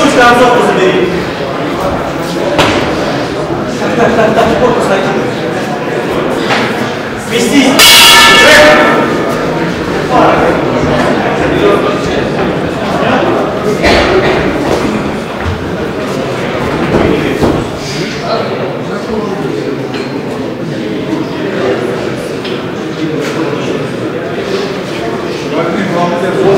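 A crowd of spectators chatters and shouts throughout a large echoing hall.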